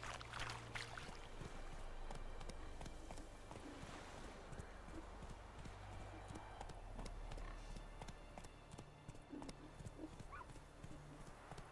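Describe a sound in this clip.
A horse's hooves clop steadily on a dirt path.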